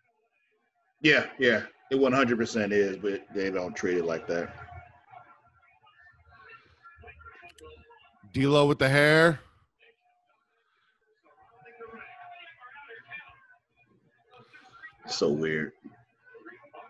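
A man talks with animation over an online call.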